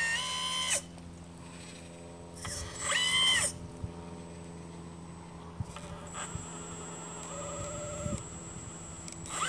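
A small electric motor hums steadily.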